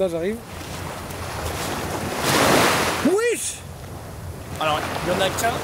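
Small waves wash and splash onto the shore.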